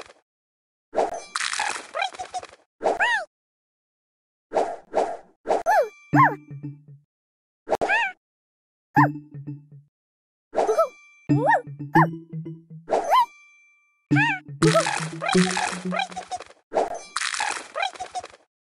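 Game pieces pop and burst with bright, chiming effects in quick bursts.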